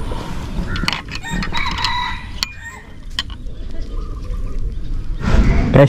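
A fishing reel clicks and whirs as its handle is turned.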